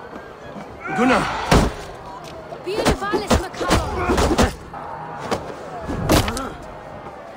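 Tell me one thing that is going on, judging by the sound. Fists thud and punches land in a brawl.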